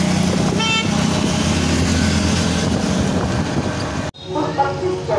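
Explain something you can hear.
Motorcycle engines pass close by.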